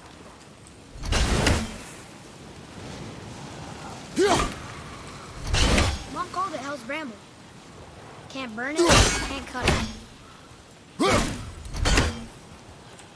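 An axe strikes wood with heavy thuds.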